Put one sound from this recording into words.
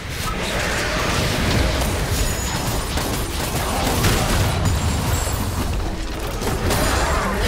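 Spell effects whoosh and blast in a game battle.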